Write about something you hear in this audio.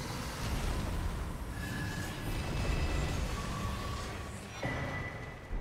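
A magical burst crackles and shimmers.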